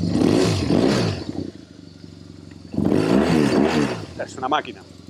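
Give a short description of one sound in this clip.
A motorcycle engine revs loudly in short bursts.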